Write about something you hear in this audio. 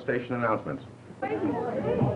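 A man speaks into a microphone, heard through a loudspeaker.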